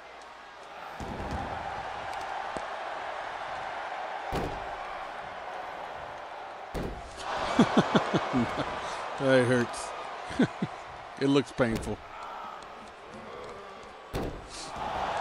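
Heavy thuds land on a wrestling ring mat.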